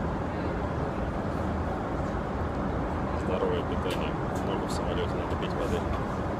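A plastic bottle crinkles in a hand.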